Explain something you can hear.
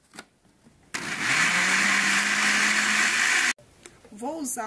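A blender motor whirs loudly.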